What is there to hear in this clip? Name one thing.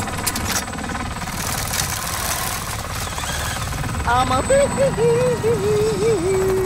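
A helicopter's rotor thumps and roars overhead.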